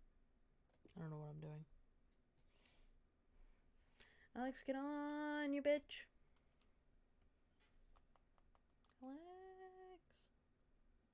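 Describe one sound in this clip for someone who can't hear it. A young woman speaks briefly and quietly into a microphone.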